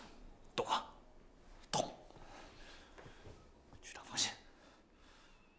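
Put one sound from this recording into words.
A man speaks calmly and firmly, close by.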